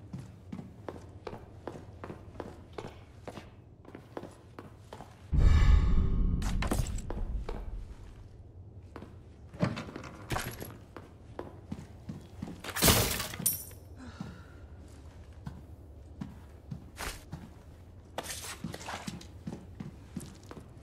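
Footsteps tread steadily indoors.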